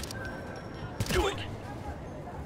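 A silenced rifle fires a single shot.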